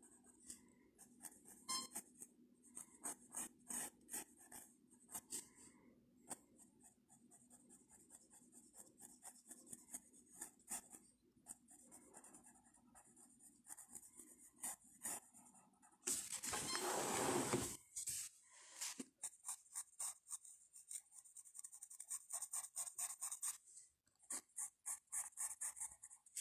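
A pencil scratches across paper in quick, repeated strokes.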